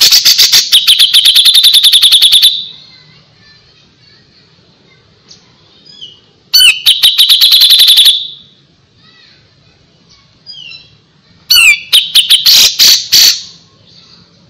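A small songbird sings loud, rapid trilling bursts close by.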